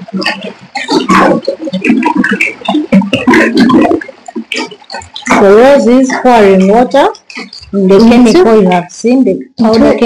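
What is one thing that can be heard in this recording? Liquid pours and splashes into water.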